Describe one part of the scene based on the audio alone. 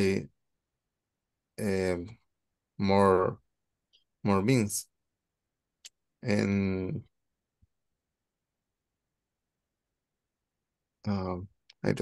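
A young man speaks calmly in short phrases over an online call.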